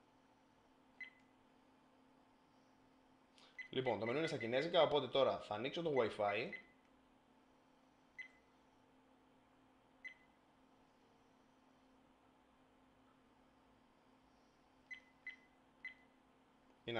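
A small electronic device beeps briefly several times.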